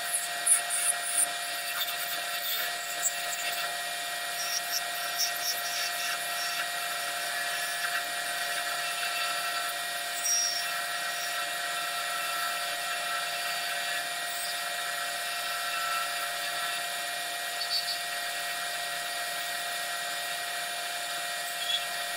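A wood lathe motor hums as it runs.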